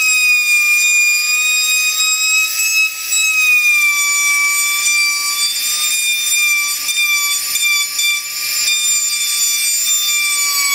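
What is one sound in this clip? A small router whines loudly at high speed as it cuts into wood.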